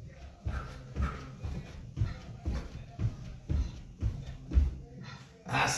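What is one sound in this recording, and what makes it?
A man's feet thump on a mat in quick steps.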